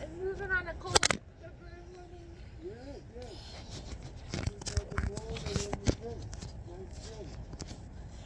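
Fabric rustles against a microphone close by.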